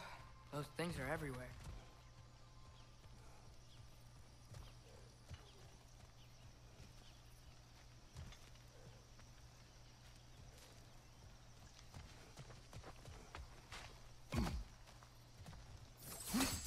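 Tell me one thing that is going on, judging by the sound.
Heavy footsteps crunch on gravel and thud on wooden planks.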